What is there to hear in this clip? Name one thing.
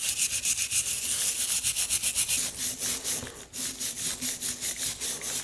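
A rotary wire brush whirs and scrapes against metal with a harsh, pulsing hiss.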